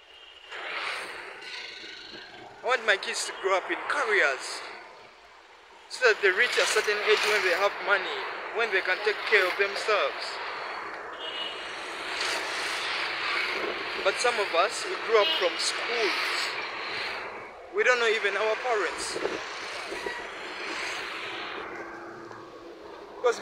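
Motorbikes and cars pass by on a road.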